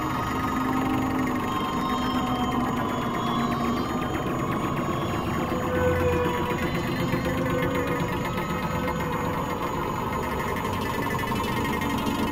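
A synthesizer plays slow, sustained notes.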